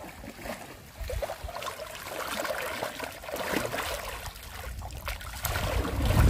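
Water pours and trickles through a sieve.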